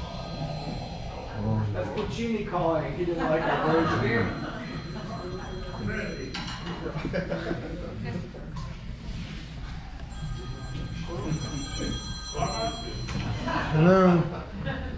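A drummer plays a jazz beat on drums and cymbals.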